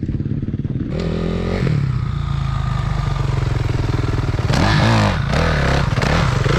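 A dirt bike engine revs nearby.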